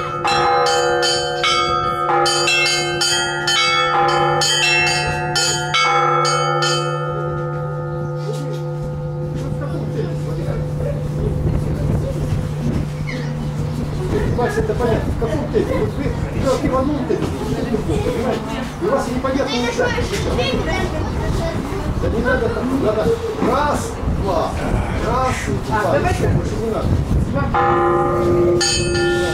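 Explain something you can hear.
Small church bells ring out in a quick, rhythmic peal and hum as they fade.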